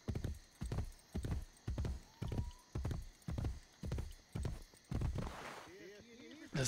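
Horse hooves gallop in a quick, steady beat.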